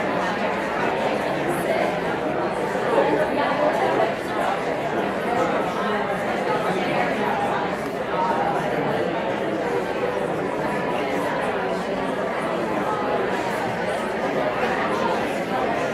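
A man speaks steadily into a microphone, heard through loudspeakers in a large echoing hall.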